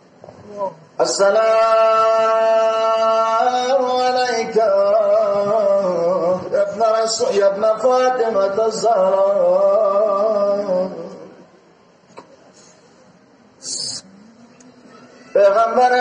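An elderly man chants a mournful lament through a loudspeaker, echoing outdoors.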